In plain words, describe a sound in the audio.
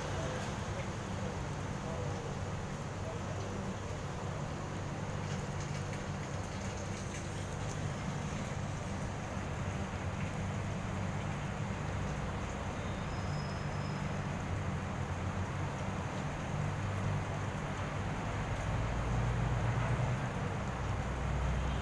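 A cat laps water from a plastic tub.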